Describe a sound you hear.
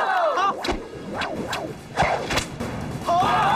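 A cloth sash snaps and whips sharply through the air.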